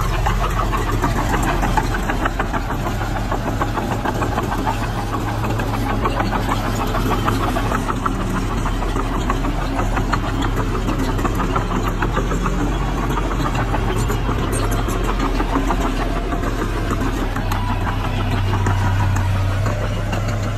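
A diesel engine rumbles steadily up close.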